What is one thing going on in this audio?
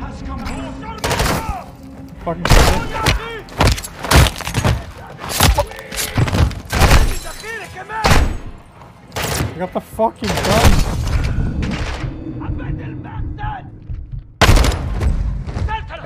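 Gunshots ring out in loud, rapid bursts.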